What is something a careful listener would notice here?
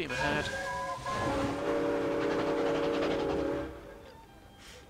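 Steam hisses loudly in a steady burst.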